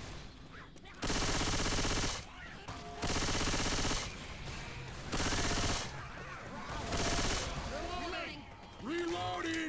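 A heavy machine gun fires in long, rapid bursts.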